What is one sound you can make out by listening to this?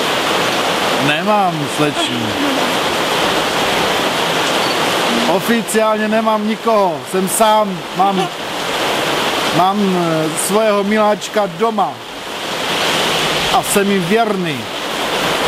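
A middle-aged man talks calmly and cheerfully close to a microphone.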